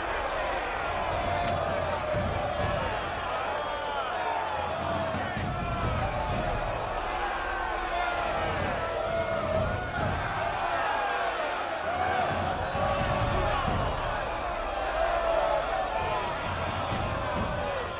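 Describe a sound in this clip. A large crowd of men and women jeers and shouts angrily all around.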